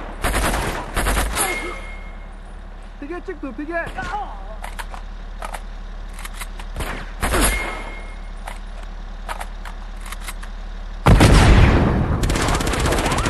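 A tank cannon fires with loud booming blasts.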